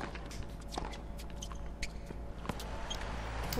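A tennis ball is struck with a racket.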